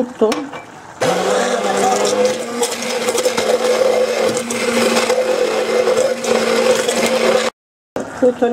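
A hand blender whirs steadily.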